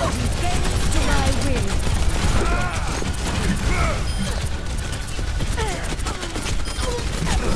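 Rapid gunfire blasts steadily.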